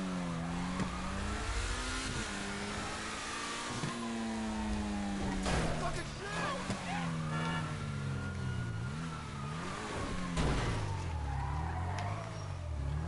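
A sports car engine roars and revs up and down.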